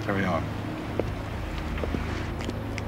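Footsteps tap on a hard floor as a man walks.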